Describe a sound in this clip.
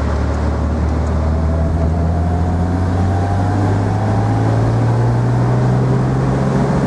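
Wind rushes past an open car.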